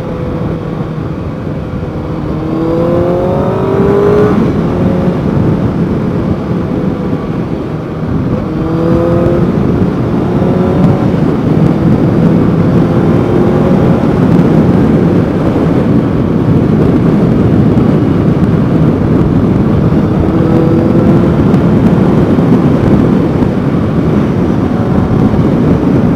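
A motorcycle engine hums and revs up as the rider accelerates.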